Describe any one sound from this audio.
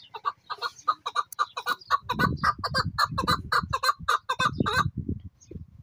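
A caged bird calls with a rapid, repeated chattering call close by.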